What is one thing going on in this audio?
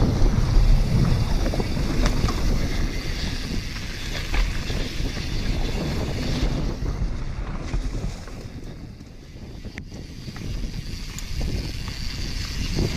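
Bike tyres rumble and crunch over a dirt trail.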